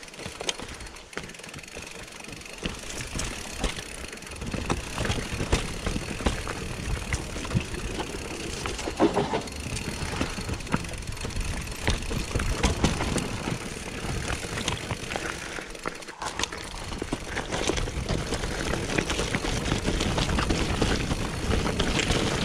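Bicycle tyres crunch and rattle over a rough dirt and stone trail.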